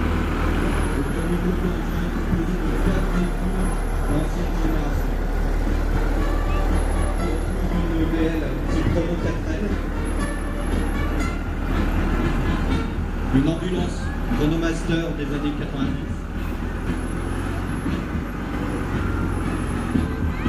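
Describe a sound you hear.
A towed trailer rattles over the road.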